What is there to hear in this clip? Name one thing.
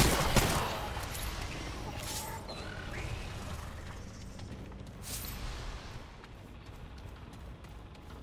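Footsteps crunch over leaves and dirt.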